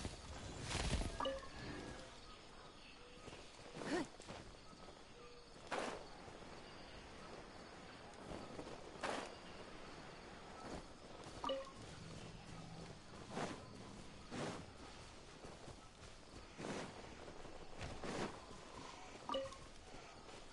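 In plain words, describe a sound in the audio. A short bright chime rings when an item is picked up.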